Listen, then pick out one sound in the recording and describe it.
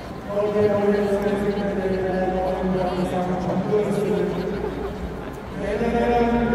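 A huge crowd sings together in unison, echoing across a vast open stadium.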